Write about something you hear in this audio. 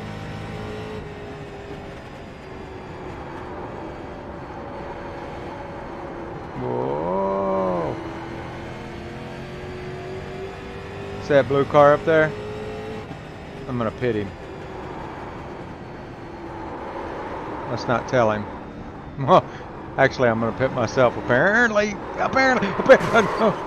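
A race car engine drones steadily.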